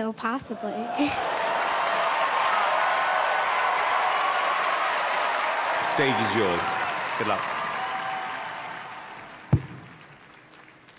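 A large audience cheers and applauds loudly in a big hall.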